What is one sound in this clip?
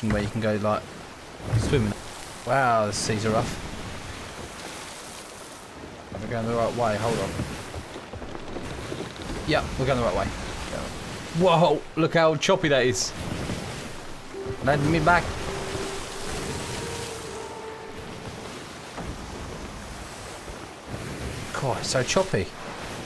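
Waves surge and wash against a wooden ship in rough seas.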